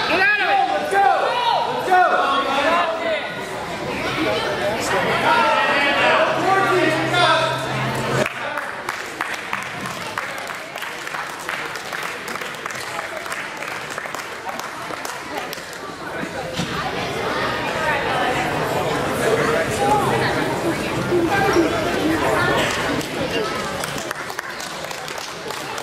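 People chatter and call out in a large echoing hall.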